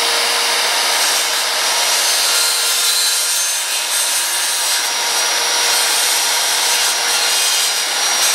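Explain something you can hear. Metal parts of a circular saw click and rattle as they are adjusted by hand.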